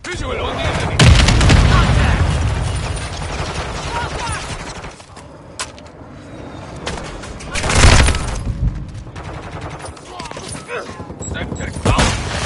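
Gunfire bursts out in rapid shots.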